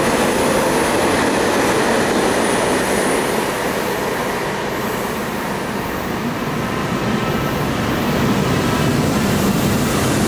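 A high-speed train rumbles past, then fades into the distance.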